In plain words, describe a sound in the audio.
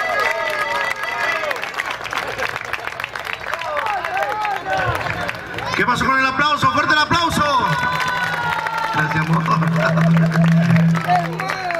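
A band plays lively music through loudspeakers outdoors.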